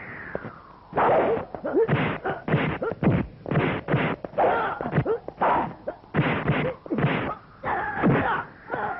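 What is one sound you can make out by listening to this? Punches and kicks land with loud, sharp thuds in quick succession.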